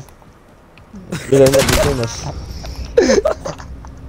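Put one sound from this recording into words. Gunfire rings out in short bursts.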